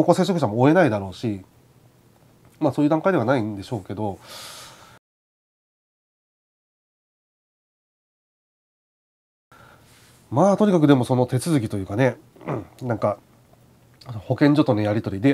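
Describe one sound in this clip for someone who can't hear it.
A man talks calmly and close to a microphone.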